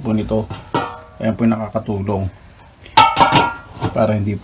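A metal lid clanks shut on a bin.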